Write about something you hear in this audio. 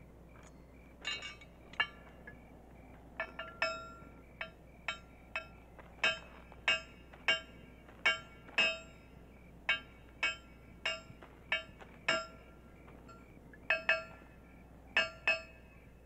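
A hammer rings on metal in slow, steady blows.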